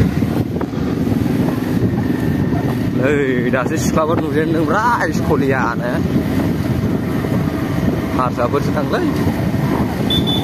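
A motorcycle engine rumbles steadily close by while riding.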